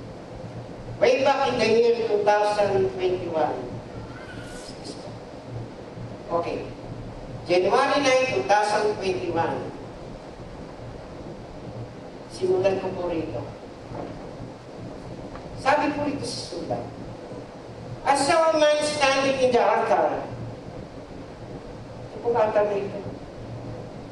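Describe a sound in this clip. A man speaks with animation through a microphone in a large echoing hall, pausing between phrases.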